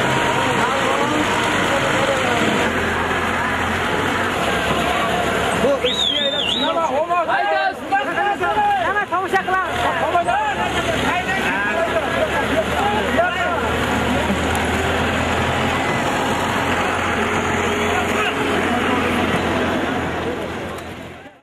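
A large crowd of men murmurs and shouts outdoors.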